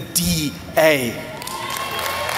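A man speaks forcefully through a microphone in a large echoing hall.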